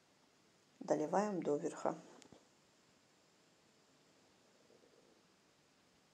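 Liquid pours into a glass jar.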